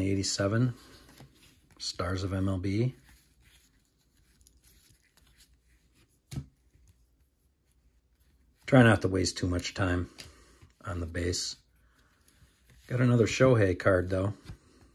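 Cards shuffle and slide against one another in hands.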